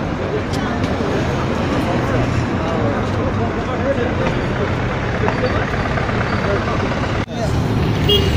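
Traffic rumbles steadily outdoors.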